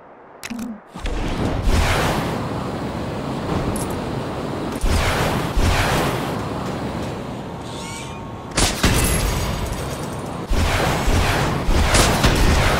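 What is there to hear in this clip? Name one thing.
Loud energy blasts burst with a whoosh.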